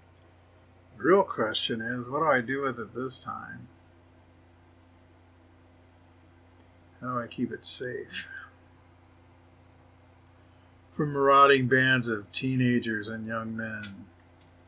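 A middle-aged man talks calmly, close to a microphone.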